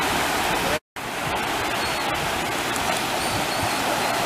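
Gulls call overhead.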